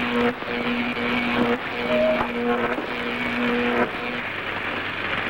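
An electronic machine hums in steady bursts.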